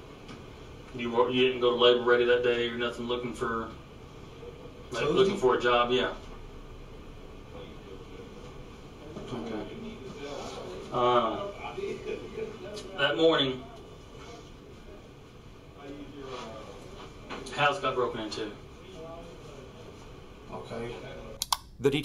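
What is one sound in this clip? A man speaks calmly in short bursts.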